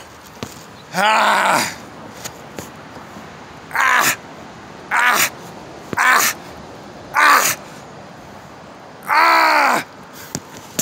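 A man grunts and exhales loudly with effort.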